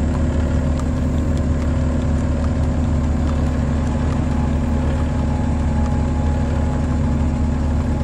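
Horse hooves clip-clop steadily on a paved road.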